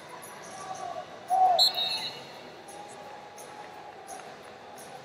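A crowd chatters and calls out in a large echoing hall.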